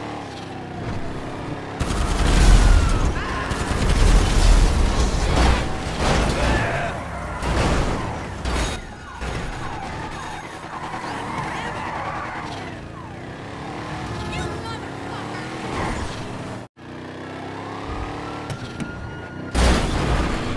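A car engine roars as it speeds along.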